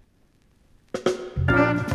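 Music plays loudly from a record.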